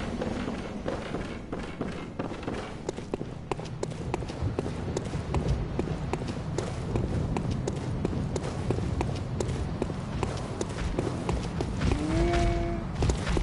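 Footsteps hurry over stone.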